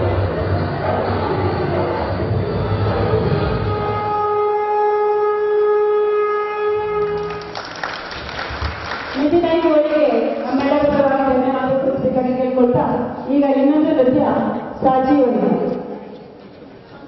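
Music with a woman singing plays over loudspeakers in a large echoing hall.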